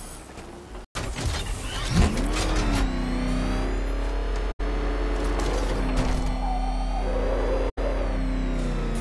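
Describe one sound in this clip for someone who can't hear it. A powerful vehicle engine starts, revs and roars steadily.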